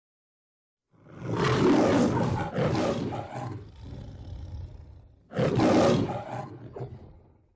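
A lion roars loudly, twice.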